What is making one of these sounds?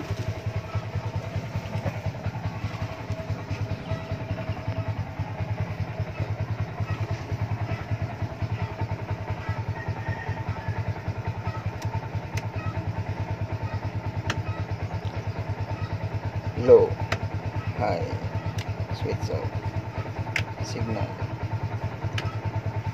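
A large diesel engine idles with a steady throbbing rumble.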